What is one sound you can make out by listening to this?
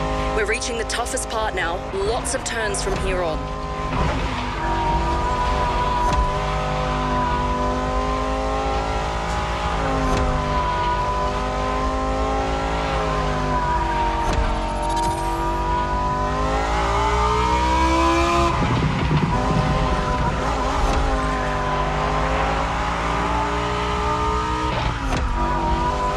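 A racing engine roars at high revs, its pitch rising and falling as it shifts gears.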